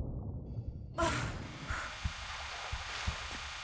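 A figure splashes into shallow water.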